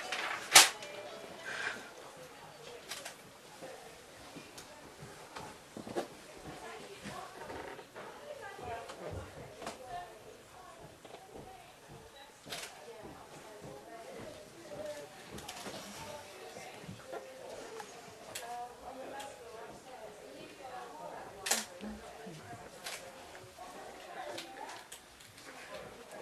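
A woman speaks in a muffled voice, reciting.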